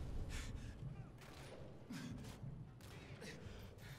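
A .50 calibre sniper rifle fires a booming shot in a video game.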